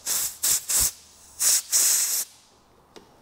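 An air blow gun hisses in short bursts.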